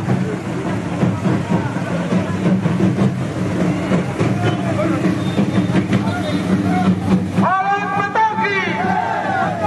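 A crowd of men talk and shout loudly outdoors.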